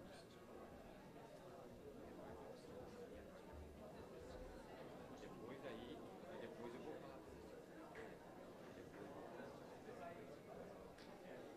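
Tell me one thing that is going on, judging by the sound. Several men talk at once in a murmur of overlapping voices, in a large room.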